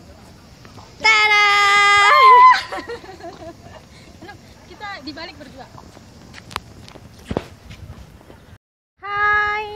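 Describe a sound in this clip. A young woman calls out in a high, drawn-out voice.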